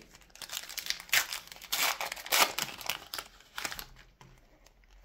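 A foil wrapper crinkles and tears as a pack is opened.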